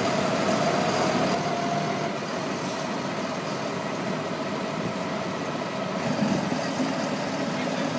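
Silage slides and pours out of a tipping trailer.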